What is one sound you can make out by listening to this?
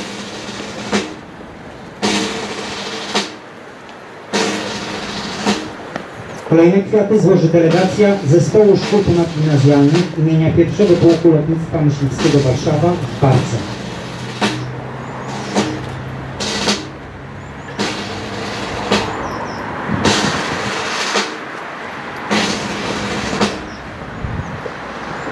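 A man speaks calmly through a loudspeaker outdoors.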